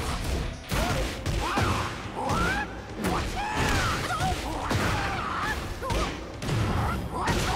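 Heavy punches and kicks land with loud thuds and smacks.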